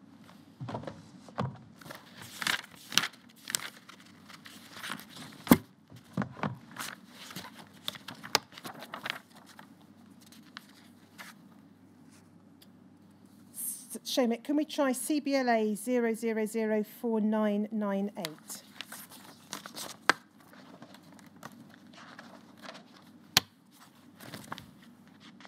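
Papers rustle and crinkle close by.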